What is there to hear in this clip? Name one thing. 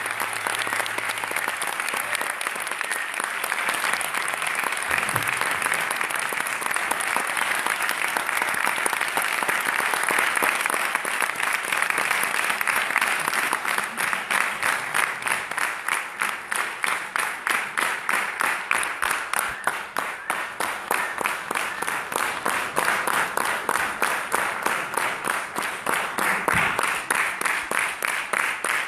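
A large crowd applauds in an echoing hall, settling into steady rhythmic clapping.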